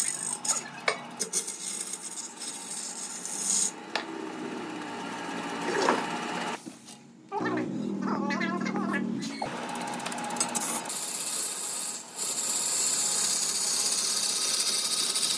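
A chisel scrapes and hisses against spinning wood on a lathe.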